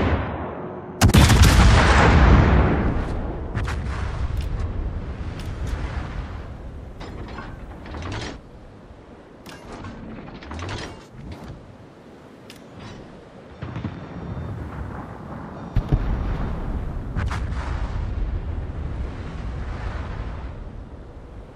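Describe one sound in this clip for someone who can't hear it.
Heavy naval guns fire loud booming salvos that rumble away.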